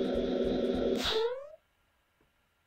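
A short cartoon jump sound springs upward.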